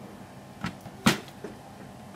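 A blender jar clicks onto its base.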